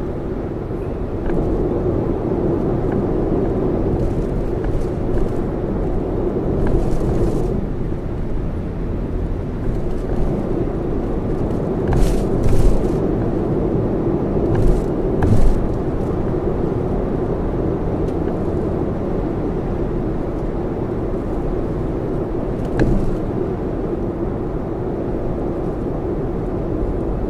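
Tyres roar steadily over a highway surface.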